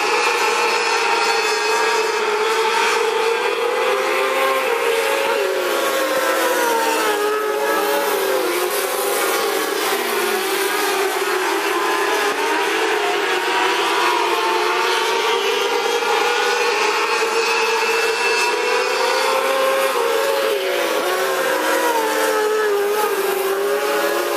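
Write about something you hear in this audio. Several race car engines roar loudly around a dirt track, rising and falling in pitch.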